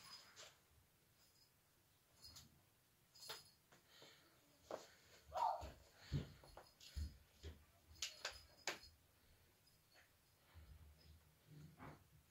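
A cat bats at a plastic toy, making rustling clicks and taps.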